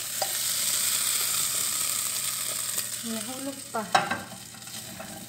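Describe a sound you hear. Potato chunks tumble and thud onto a plate.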